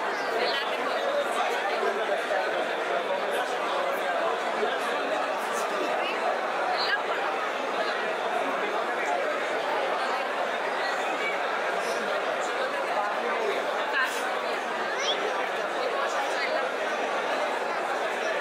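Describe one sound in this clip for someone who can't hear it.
A crowd murmurs in the background of a busy echoing hall.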